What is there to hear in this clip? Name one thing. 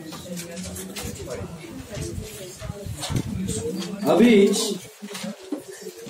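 Paper pages rustle in a man's hands.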